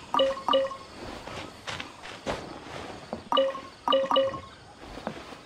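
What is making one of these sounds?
Bright chimes ring out as items are picked up.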